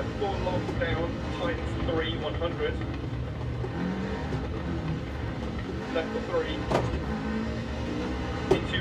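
A rally car engine roars and revs steadily through loudspeakers.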